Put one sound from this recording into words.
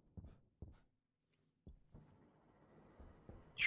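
A door slides open.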